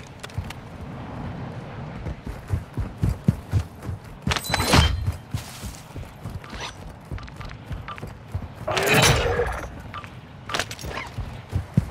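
Footsteps run quickly over sand and hard ground.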